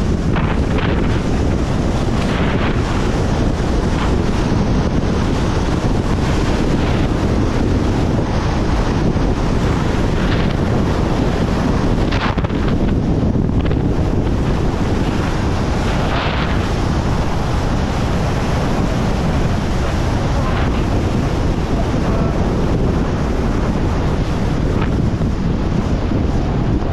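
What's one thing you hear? Skis hiss and scrape fast over snow.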